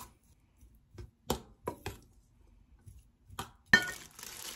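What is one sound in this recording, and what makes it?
A spoon scrapes and clinks against a metal bowl.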